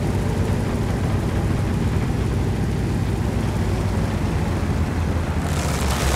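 A tank engine rumbles steadily as the tank drives over rough ground.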